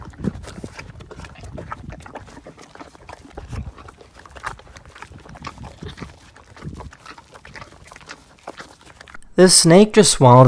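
A horse licks and chews on a wooden fence rail with soft wet smacking sounds.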